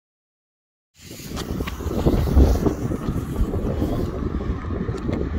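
A firework fuse fizzes and sputters.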